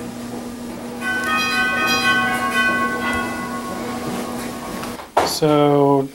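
A laptop plays a steady ringing tone.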